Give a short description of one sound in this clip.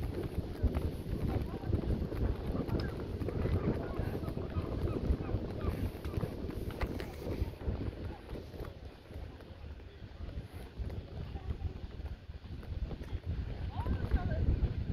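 Wind blusters into the microphone outdoors.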